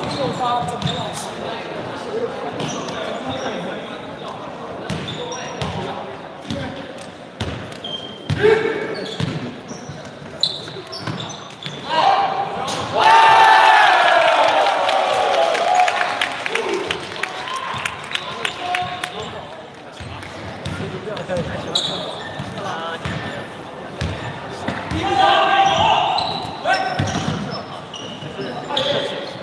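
Sneakers squeak sharply on a wooden floor in an echoing hall.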